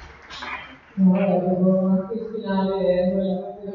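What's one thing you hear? A young woman speaks calmly into a microphone, heard through loudspeakers.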